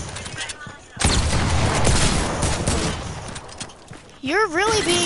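Video game gunshots crack in quick bursts.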